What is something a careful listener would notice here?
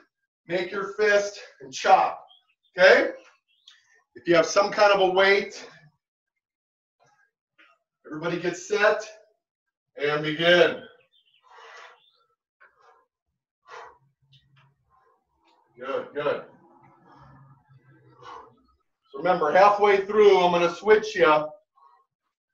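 A middle-aged man speaks up close, instructing with energy.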